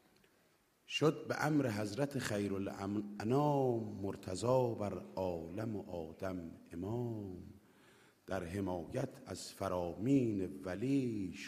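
A man chants with feeling through a microphone in an echoing hall.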